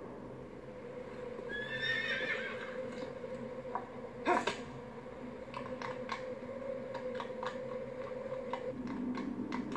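Horse hooves clop steadily on stone.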